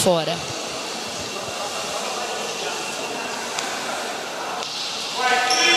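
Men call out across a large echoing hall.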